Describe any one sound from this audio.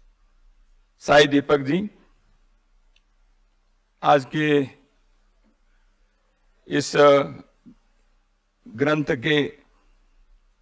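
An elderly man speaks slowly and deliberately into a microphone, in short phrases with pauses.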